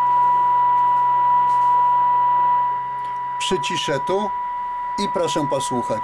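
A radio gives out a steady, high-pitched test tone.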